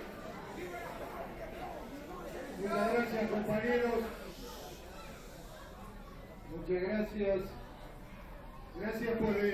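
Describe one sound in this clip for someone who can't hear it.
A middle-aged man speaks loudly through a microphone and loudspeakers, in a hall with some echo.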